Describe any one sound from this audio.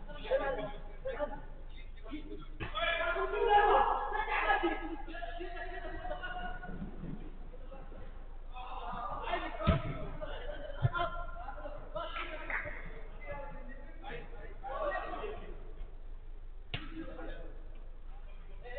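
Men shout and call to each other across an indoor pitch.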